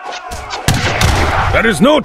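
Gunshots crack in a noisy battle.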